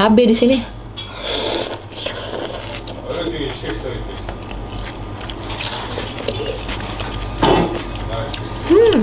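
A woman slurps noodles loudly.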